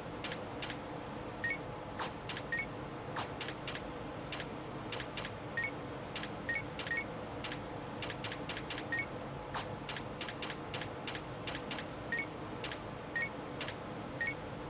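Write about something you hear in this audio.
Game menu clicks tick quickly as selections move.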